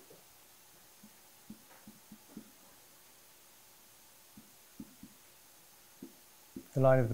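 A marker squeaks and taps on a whiteboard.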